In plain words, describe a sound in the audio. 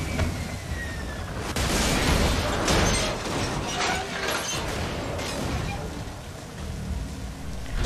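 A vehicle engine roars.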